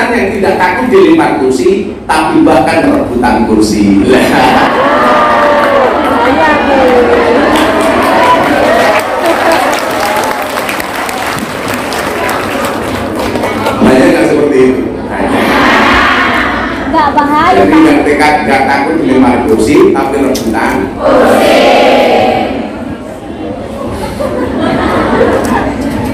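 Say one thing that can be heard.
A man speaks with animation through a microphone and loudspeakers in a large echoing hall.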